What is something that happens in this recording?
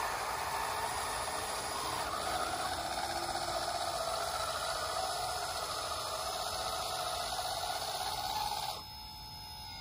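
The electric motor of a toy bulldozer whines steadily as it drives, then stops.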